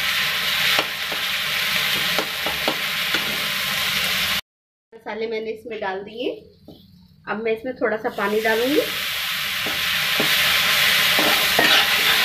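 A spatula scrapes and stirs against a metal pan.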